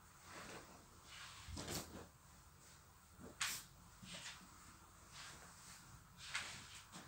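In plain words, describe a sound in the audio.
Fabric rustles as clothes are handled and moved.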